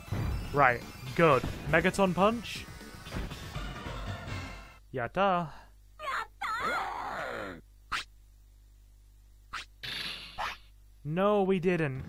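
Short electronic game sound effects bleep during a fight.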